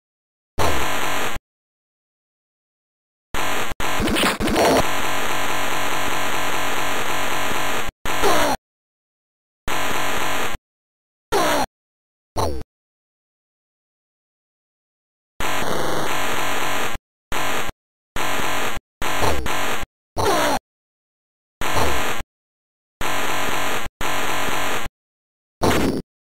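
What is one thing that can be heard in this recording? Loud, buzzy video game sound effects blare in short bursts with silent gaps.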